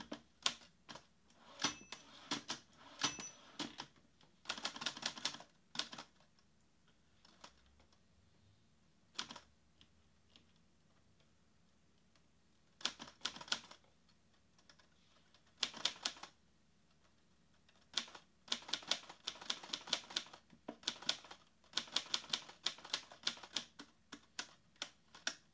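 Fingers tap quickly on a laptop keyboard in bursts.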